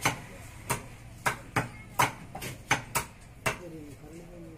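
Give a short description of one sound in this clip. A cleaver chops meat on a wooden block with sharp, rapid knocks.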